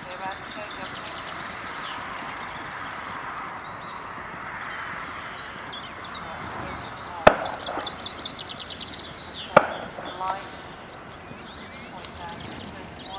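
A horse's hooves thud softly on grass.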